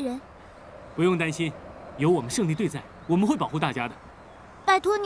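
A young man speaks cheerfully and reassuringly, close by.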